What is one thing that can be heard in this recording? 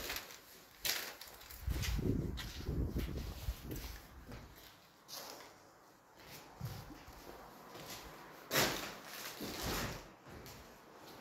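Footsteps crunch over broken plaster and debris.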